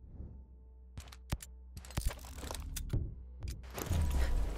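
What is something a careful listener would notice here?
Menu interface clicks sound in quick succession.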